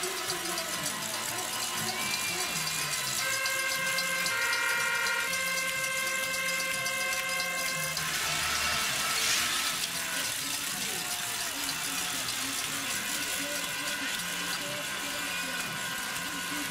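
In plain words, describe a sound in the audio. A crowd of spectators cheers and claps outdoors.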